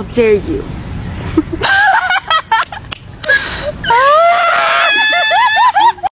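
Young women laugh and squeal.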